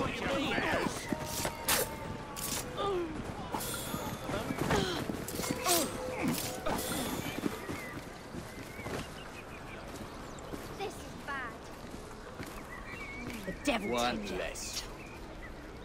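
Men grunt and shout as they fight.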